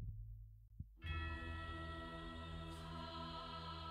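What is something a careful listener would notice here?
Soft, steady music drones.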